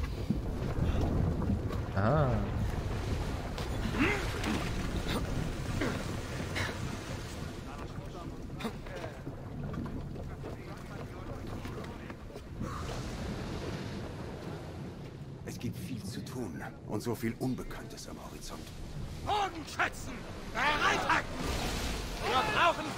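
Sea waves rush steadily.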